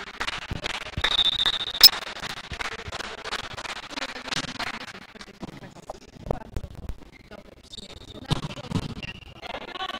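Sneakers squeak on a hard court floor.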